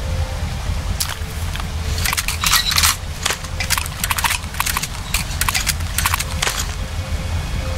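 Shells click into a shotgun as it is reloaded.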